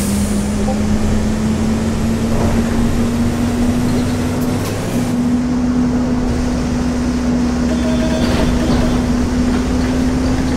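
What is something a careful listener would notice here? A bus engine hums steadily while driving.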